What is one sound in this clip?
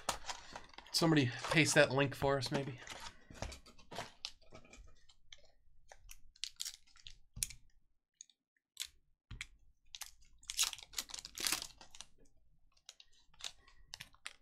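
Foil packs crinkle and rustle as they are handled.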